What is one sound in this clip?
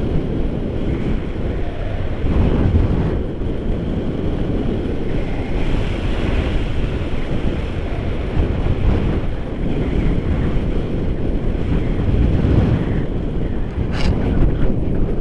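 Wind rushes loudly past a microphone outdoors.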